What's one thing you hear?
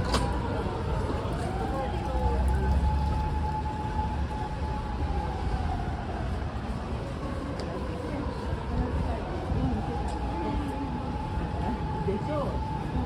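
Footsteps tap on a pavement close by.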